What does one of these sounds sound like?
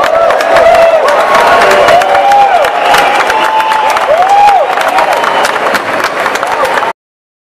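A crowd cheers, whistles and claps.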